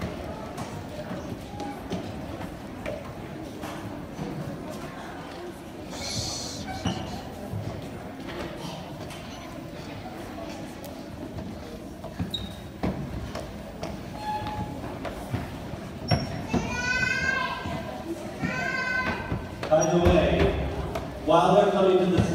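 Children jump down from a stage and land with thuds.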